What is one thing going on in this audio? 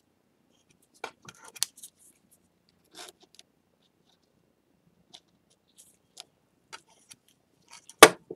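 A blade scrapes and scratches on a ceramic bowl.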